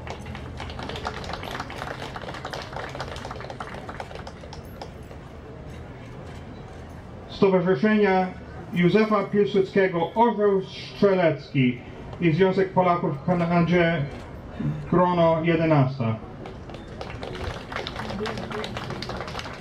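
A crowd murmurs quietly outdoors.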